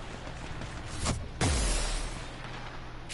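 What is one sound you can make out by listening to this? A loud explosion booms up close.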